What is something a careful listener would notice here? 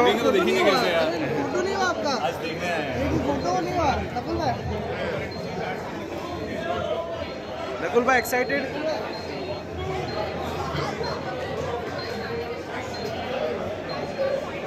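A crowd chatters all around indoors.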